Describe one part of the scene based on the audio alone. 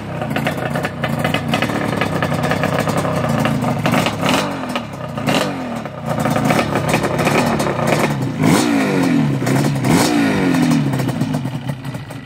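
A small off-road engine revs up and down again and again, loud and close.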